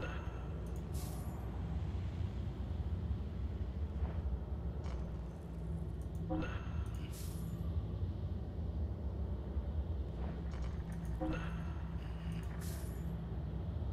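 A short chime rings several times as menu items are picked.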